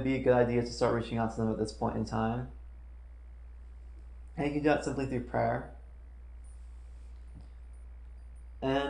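A young man speaks calmly close by, in short bursts with pauses.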